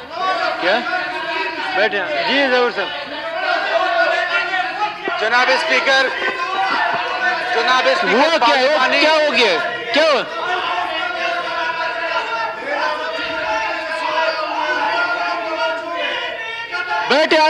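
Several men shout over one another in a large echoing hall.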